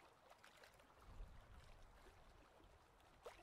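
A swan flaps its wings over water.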